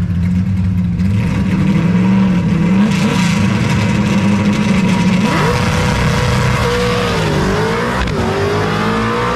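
A drag racing car's engine revs up hard and roars as the car launches away.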